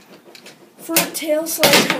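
A handboard clacks and grinds along a metal rail.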